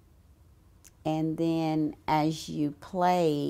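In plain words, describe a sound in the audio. An older woman speaks calmly and close to a microphone.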